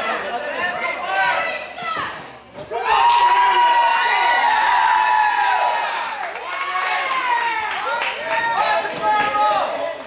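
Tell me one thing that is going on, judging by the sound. A crowd of spectators chants and cheers.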